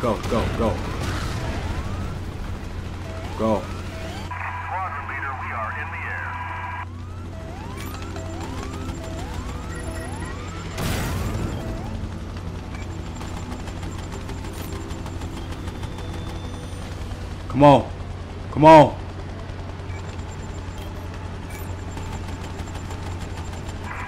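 A helicopter's rotor thumps and drones steadily.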